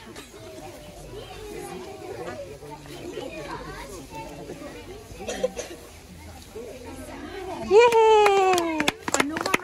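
Young children and adults chatter nearby outdoors.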